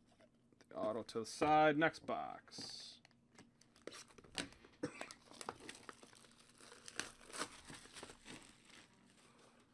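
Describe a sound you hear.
Cardboard boxes scrape and tap as hands move them.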